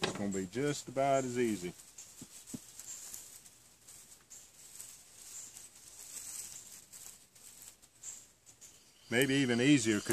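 Dry grass rustles as it is pulled and crumpled by hand.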